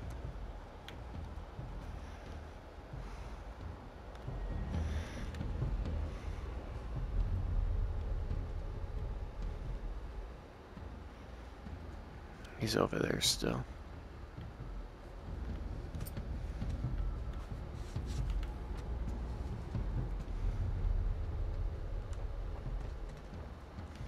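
Soft footsteps creep slowly across a creaky wooden floor.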